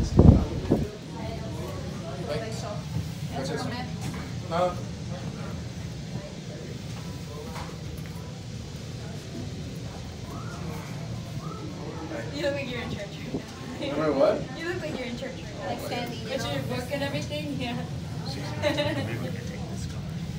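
An elevator hums steadily.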